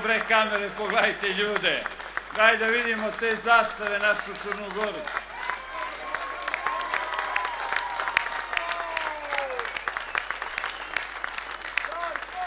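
A large crowd claps outdoors.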